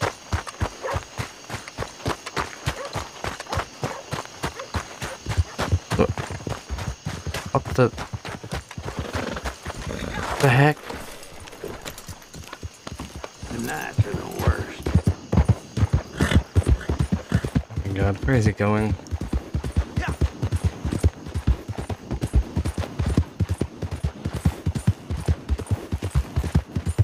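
A horse's hooves thud rapidly on the ground.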